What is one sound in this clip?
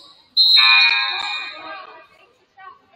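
A referee blows a sharp whistle.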